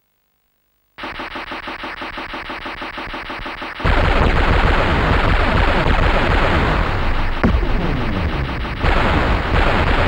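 A helicopter's rotor chops with a rapid, steady beat.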